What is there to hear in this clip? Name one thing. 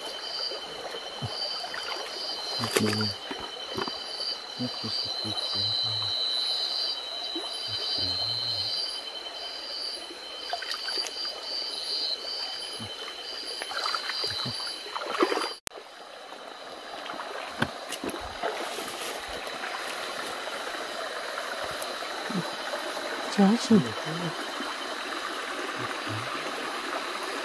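Water splashes and sloshes as a person wades through a shallow stream.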